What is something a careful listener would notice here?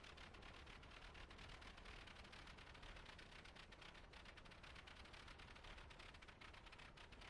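Wind rushes past an open cockpit.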